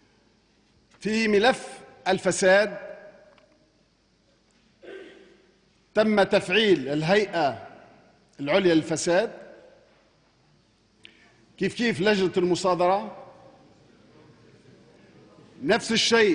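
A middle-aged man speaks formally and with emphasis into a microphone, in a large echoing hall, with long pauses.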